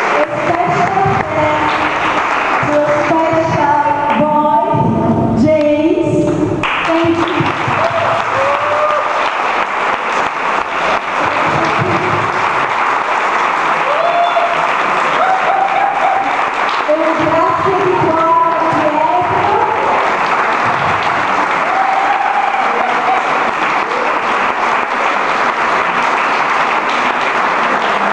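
A woman sings loudly through a microphone in a large echoing hall.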